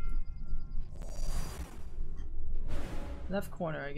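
Magic blasts whoosh and crackle in bursts.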